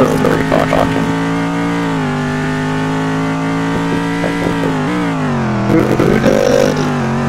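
A race car engine drones loudly, shifting pitch as the car changes gear.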